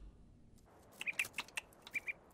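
A small bird chirps.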